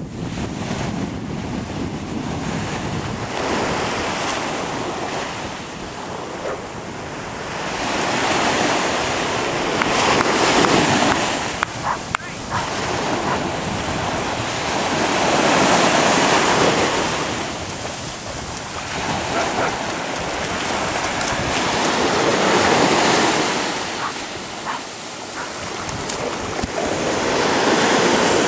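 Ocean waves surge and wash ashore.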